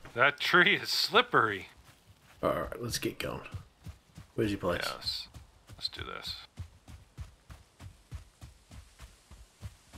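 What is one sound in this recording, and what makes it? Footsteps thud quickly through grass.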